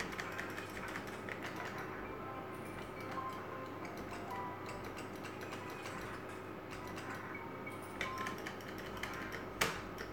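A slot machine plays beeping, jingling electronic tones.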